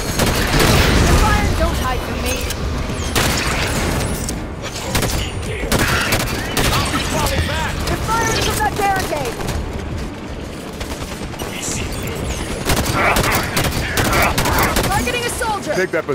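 Rapid gunfire bursts and crackles.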